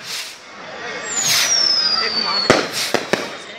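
Rockets whistle as they shoot up.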